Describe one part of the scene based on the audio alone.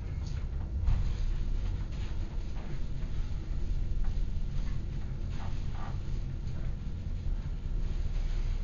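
An elevator hums and rumbles steadily as it moves.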